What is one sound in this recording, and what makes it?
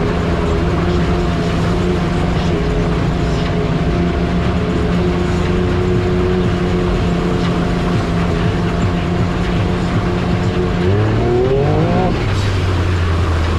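An off-road vehicle engine drones steadily, then revs up.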